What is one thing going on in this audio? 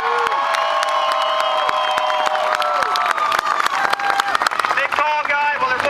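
A large crowd cheers and whistles outdoors.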